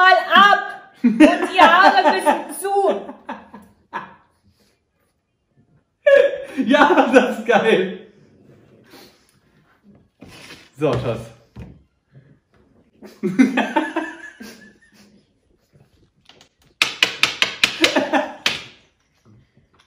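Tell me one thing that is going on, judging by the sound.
A young man laughs loudly.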